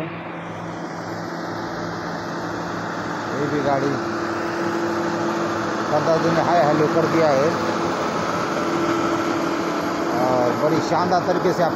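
A heavy truck approaches with a loud, steady engine drone and passes close by.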